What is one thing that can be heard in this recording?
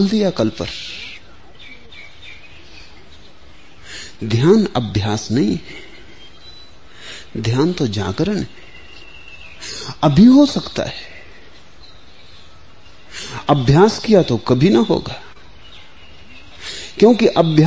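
An elderly man speaks slowly and calmly, with long pauses, close to a microphone.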